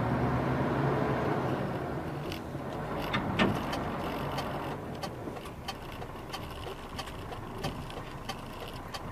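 Tyres hiss softly on the road.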